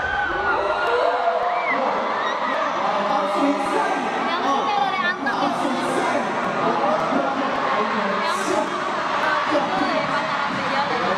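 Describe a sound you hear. A young man sings into a microphone over loudspeakers in a large echoing hall.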